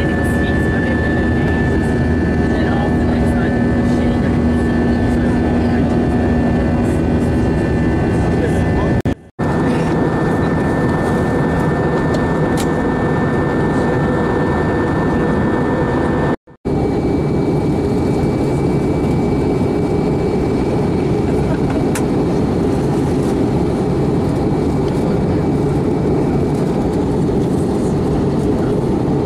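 A jet engine roars steadily inside an airliner cabin.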